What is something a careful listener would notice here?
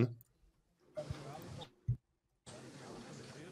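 A man speaks faintly over an online call.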